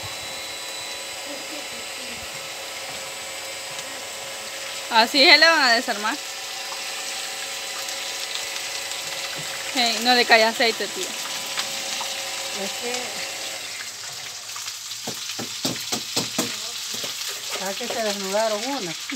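Food sizzles in hot oil in a frying pan.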